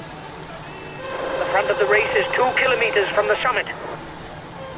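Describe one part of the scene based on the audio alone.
Spectators cheer and shout loudly as riders pass.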